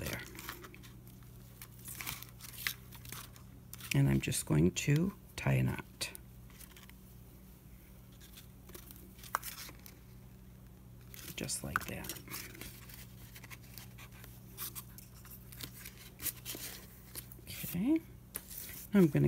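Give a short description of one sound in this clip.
Cardboard rustles and taps as it is handled up close.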